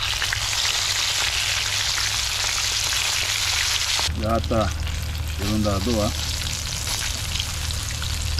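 Fish sizzles and crackles in hot oil in a pan.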